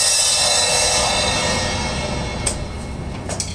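A cymbal rings out loudly and slowly fades away.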